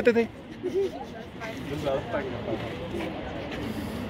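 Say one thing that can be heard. Women talk nearby in casual voices.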